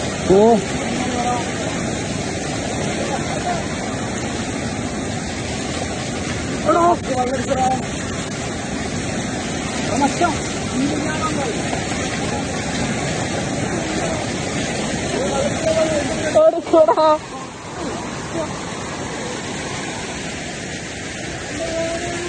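A fast river rushes and roars over rocks.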